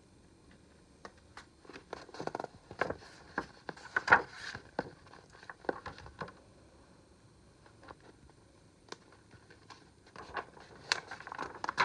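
Paper rustles and crinkles as a book is opened and handled.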